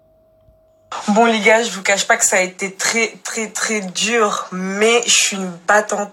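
A young woman talks with animation close to a phone's microphone.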